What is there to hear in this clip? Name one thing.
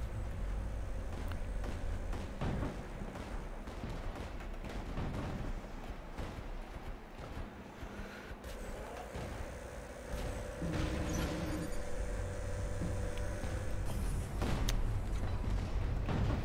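Heavy metal footsteps thud as a giant robot walks.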